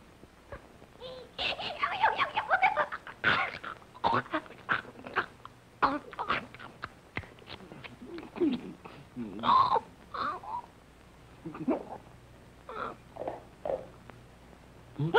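A cartoon donkey chatters in a squeaky, animated voice.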